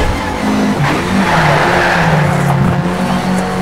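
Tyres screech as a car skids through a corner.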